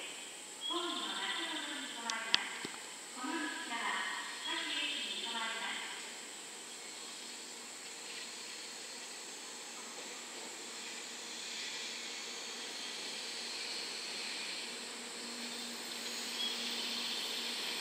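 A high-speed electric train pulls slowly into a station.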